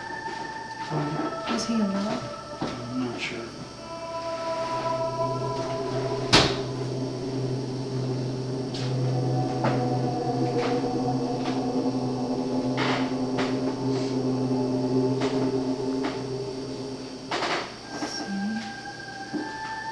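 A wooden pointer slides and scrapes softly across a board.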